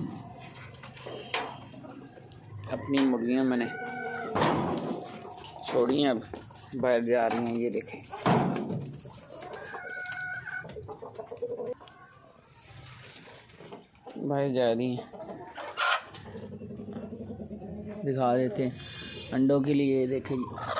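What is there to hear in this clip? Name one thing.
Hens cluck and squawk close by.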